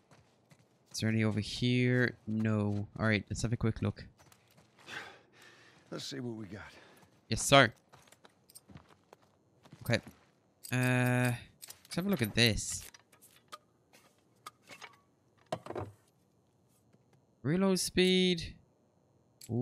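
A man speaks quietly in a low voice.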